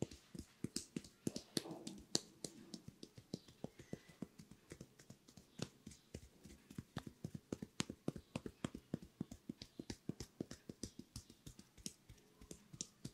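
Hands tap and pat quickly on a man's head.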